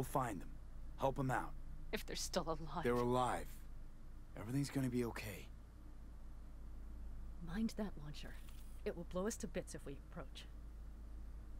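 A young woman speaks urgently, close by.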